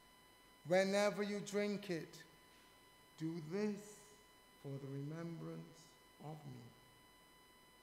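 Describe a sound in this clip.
An elderly man speaks slowly and solemnly into a microphone.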